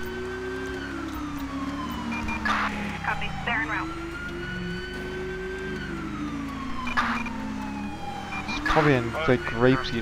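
A car engine hums and rises and falls in pitch as the car drives.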